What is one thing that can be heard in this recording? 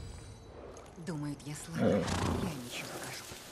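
A horse snorts and whinnies close by.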